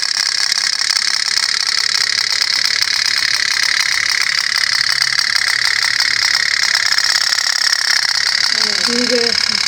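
A small toy boat putters rapidly with a fast, steady popping rattle.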